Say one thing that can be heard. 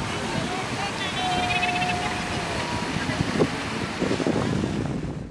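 Wind blows outdoors across open water.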